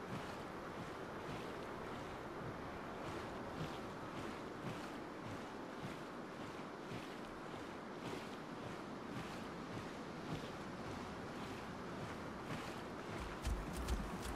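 A creature splashes as it wades through water.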